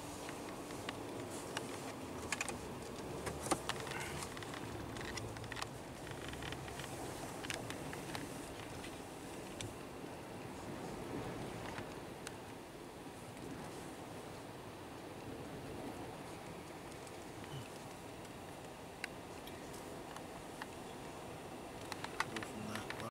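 Strong wind roars and buffets against a car.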